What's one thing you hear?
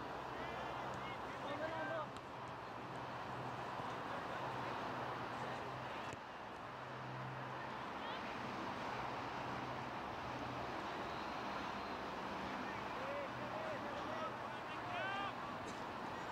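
Young players shout to each other across an open field, heard from a distance.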